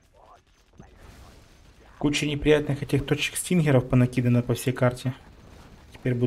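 Heavy guns fire and shells explode.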